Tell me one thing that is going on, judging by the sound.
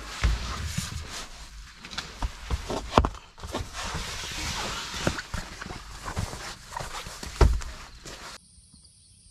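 Fabric rustles and straps rattle as hands fold up camping gear.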